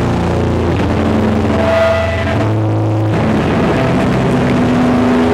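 Drums crash and pound loudly.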